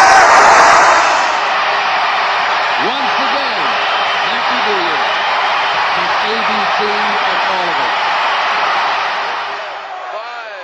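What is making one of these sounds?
A large crowd cheers and shouts loudly.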